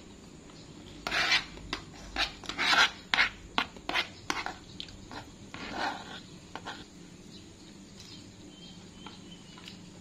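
A spoon scrapes and clinks against a plastic bowl.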